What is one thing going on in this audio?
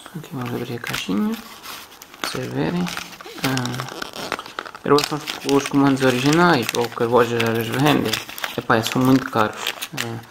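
A small cardboard box is handled and turned over.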